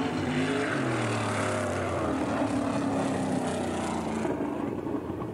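A race car engine roars and revs.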